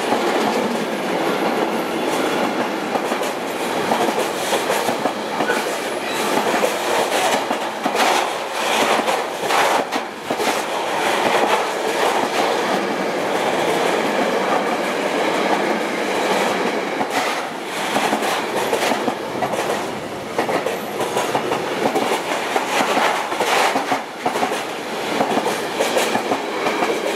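A container freight train rolls past close by.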